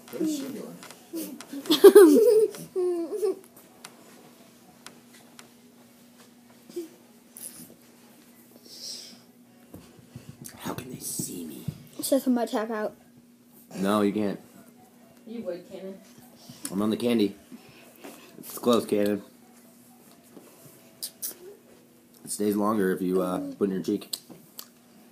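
A young boy talks animatedly close by.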